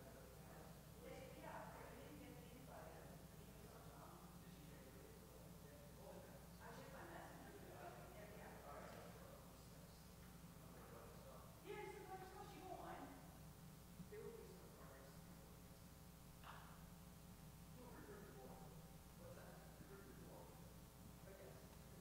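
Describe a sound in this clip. An elderly woman speaks calmly in a quiet echoing room.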